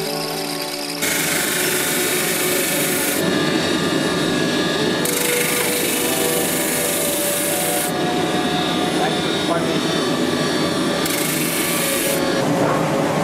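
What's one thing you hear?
A belt sander roars as wood is pressed against it.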